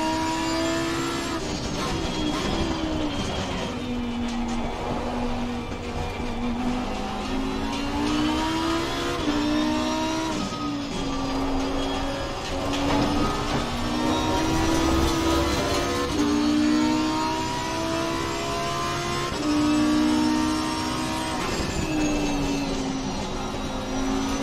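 A racing car engine roars loudly, its pitch climbing and then dropping with each gear change.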